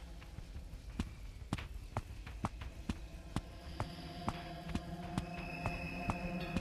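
Footsteps tap steadily on a stone floor.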